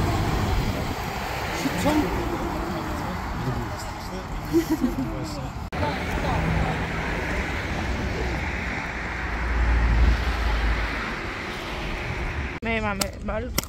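Traffic rushes past on a busy road outdoors.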